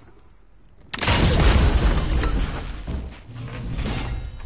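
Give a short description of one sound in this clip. A cannon fires with a loud, rumbling boom.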